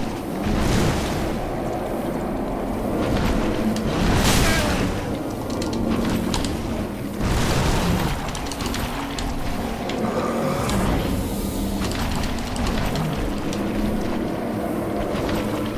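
A sword strikes a large creature.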